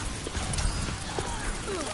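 An energy gun fires in short bursts.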